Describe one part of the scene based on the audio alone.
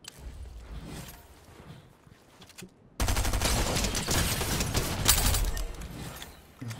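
A young man speaks into a headset microphone.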